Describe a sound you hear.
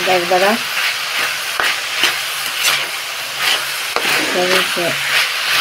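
A spatula scrapes and stirs against a metal pan.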